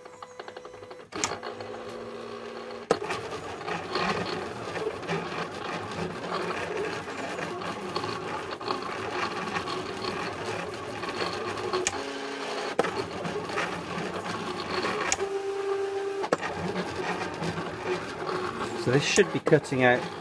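A cutting machine whirs as its carriage slides back and forth.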